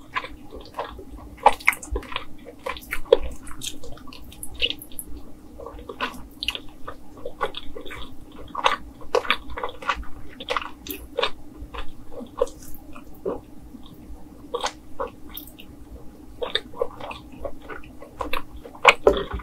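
A young woman chews food with loud, crunchy, wet mouth sounds close to a microphone.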